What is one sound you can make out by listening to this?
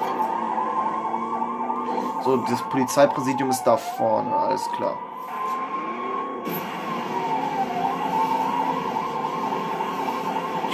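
A police siren wails steadily.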